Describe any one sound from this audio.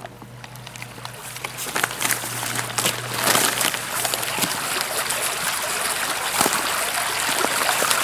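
Paper crinkles and rustles as it is folded.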